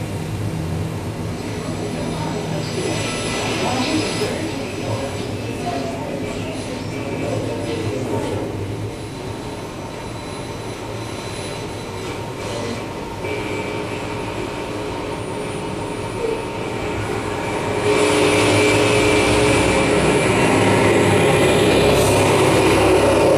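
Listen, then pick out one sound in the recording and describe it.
Electronic music plays through loudspeakers in a room and swells louder near the end.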